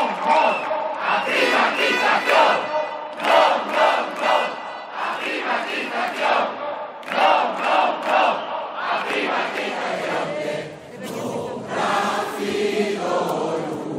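A large crowd chants in rhythm outdoors.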